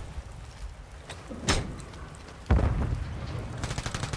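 A rifle rattles and clicks as it is raised.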